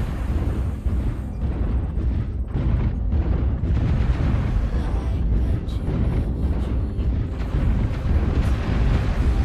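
A heavy machine's engine rumbles low and steady.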